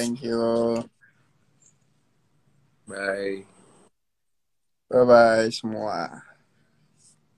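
A young man speaks casually through a phone's microphone, in short bursts.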